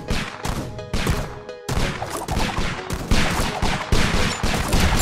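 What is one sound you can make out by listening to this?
Gunfire from game towers pops rapidly and repeatedly.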